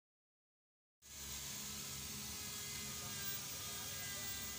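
A handheld polishing machine whirs steadily.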